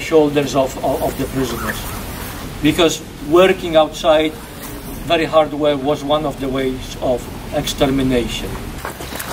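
A middle-aged man speaks with animation to a group nearby, outdoors.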